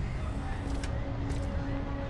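Footsteps walk on wet pavement.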